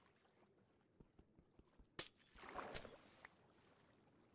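A pickaxe chips at stone blocks and breaks them.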